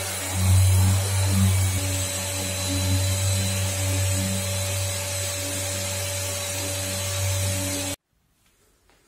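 An electric polisher hums steadily against a car body.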